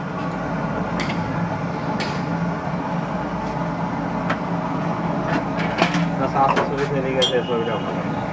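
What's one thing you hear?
Glass jars clink and knock.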